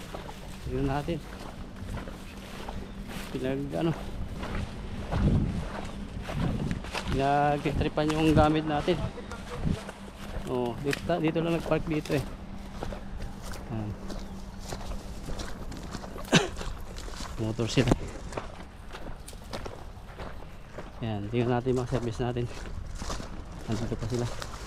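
A man talks close by in a casual, lively way.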